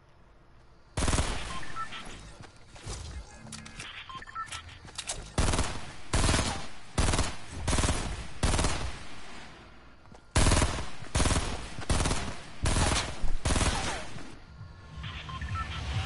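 Gunfire and game sound effects burst out loudly again and again.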